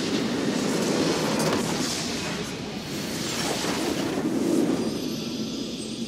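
A large building explodes with a deep boom.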